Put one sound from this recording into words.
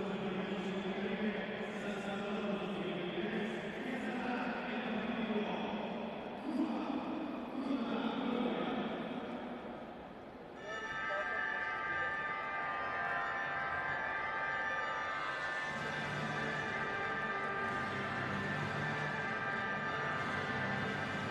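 A sparse crowd murmurs in a large echoing hall.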